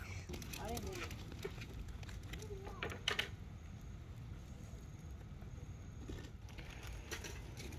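A charcoal fire crackles softly.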